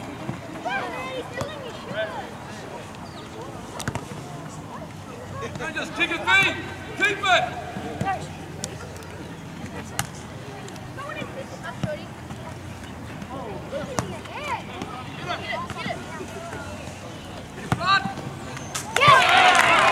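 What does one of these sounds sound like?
Young players shout to each other across an open pitch outdoors.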